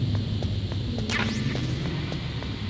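A short rising electronic chime sounds.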